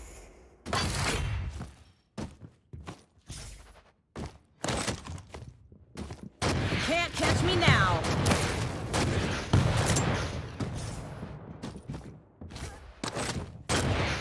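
Gunfire and rocket blasts boom in quick bursts.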